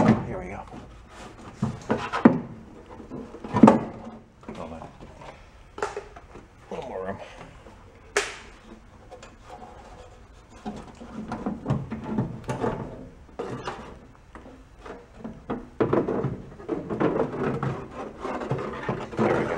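Metal panels clank and scrape as they are handled.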